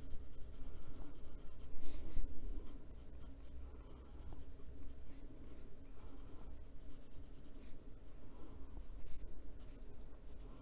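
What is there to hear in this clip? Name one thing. A pencil scratches softly across paper.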